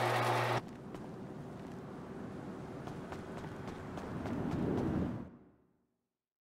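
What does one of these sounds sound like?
Footsteps run quickly on concrete.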